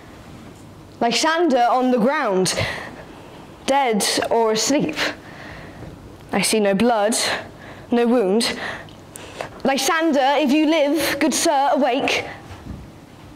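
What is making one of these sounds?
A young girl speaks expressively in short bursts, with pauses.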